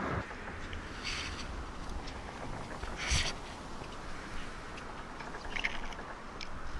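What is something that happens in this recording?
Water sloshes and splashes against a small boat's hull.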